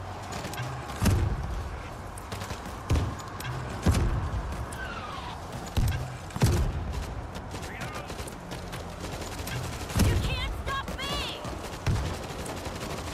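Heavy explosions boom one after another.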